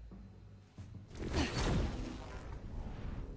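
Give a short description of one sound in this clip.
A rush of air whooshes past as someone swings away.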